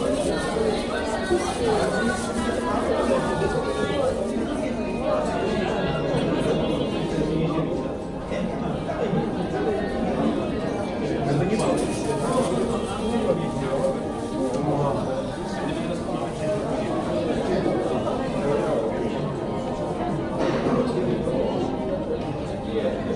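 A crowd of men and women chatters all around in a large indoor space.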